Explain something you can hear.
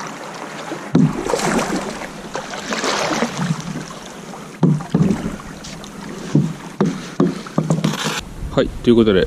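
A paddle splashes through the water.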